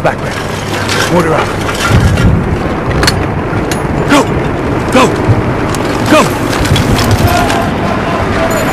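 A man calls out orders with urgency.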